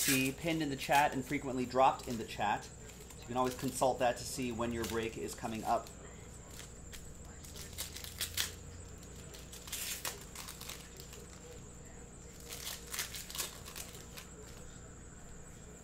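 Foil card wrappers crinkle as hands tear them open.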